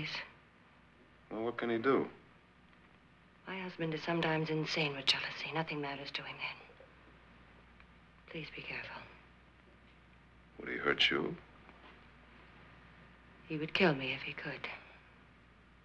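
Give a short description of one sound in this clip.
A young woman speaks softly close by.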